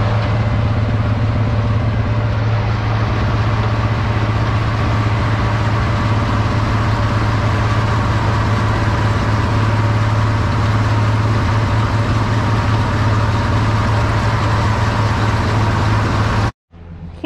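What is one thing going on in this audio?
A manure spreader clatters and rattles as it runs.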